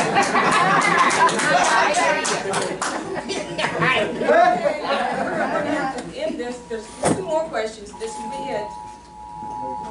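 An elderly woman speaks with animation nearby.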